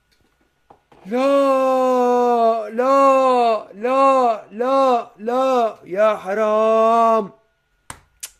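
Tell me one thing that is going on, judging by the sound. A young man wails loudly in long, drawn-out cries close to a microphone.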